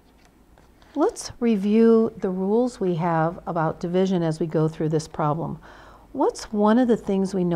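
An older woman speaks calmly and clearly into a close microphone.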